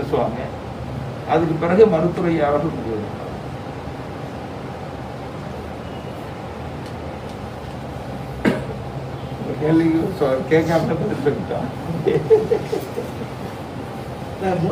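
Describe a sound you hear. A man speaks calmly into microphones, with pauses.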